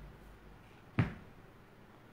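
A wooden spool knocks onto a table.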